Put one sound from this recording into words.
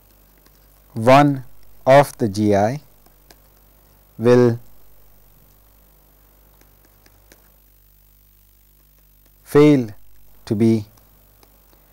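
A man speaks slowly and calmly into a close microphone, in short bursts with long pauses.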